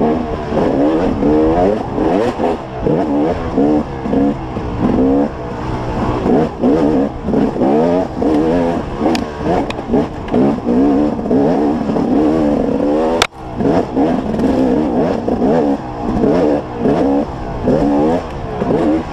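A motorbike engine revs up and down loudly and close by.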